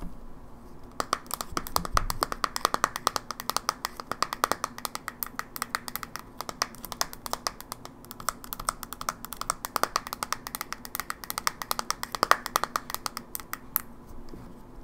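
Fingernails tap and click rapidly on a plastic handheld console, close up.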